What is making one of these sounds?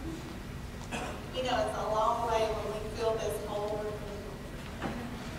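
A woman speaks briefly into a microphone, heard over loudspeakers in a large echoing hall.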